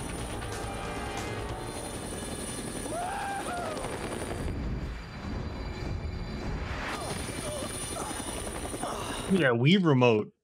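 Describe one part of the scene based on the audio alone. A helicopter's rotor thuds loudly close by.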